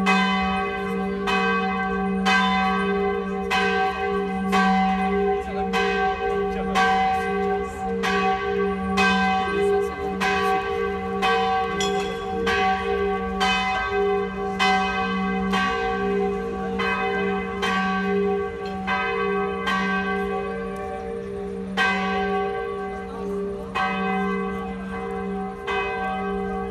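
Church bells ring out loudly in steady repeated peals, each stroke ringing on and overlapping the next.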